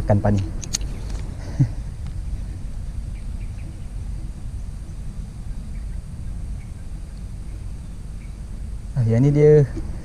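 A fishing reel whirs and clicks as line is wound in.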